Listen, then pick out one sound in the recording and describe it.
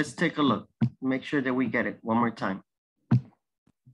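A man talks over an online call.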